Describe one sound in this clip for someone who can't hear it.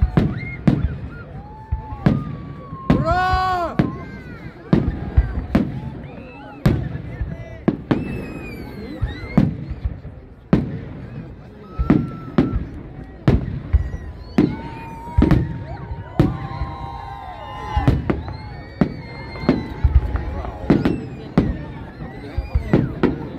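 Fireworks burst with loud booms outdoors, echoing off into the distance.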